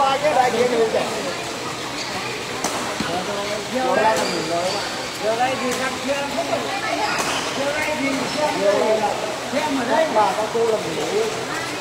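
Rackets strike a shuttlecock back and forth with sharp taps.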